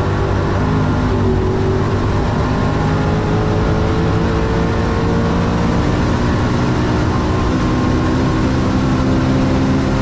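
Wind and tyres rush loudly against a fast-moving car.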